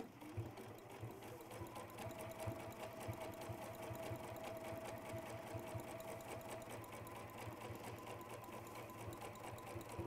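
A sewing machine runs steadily, its needle tapping rapidly.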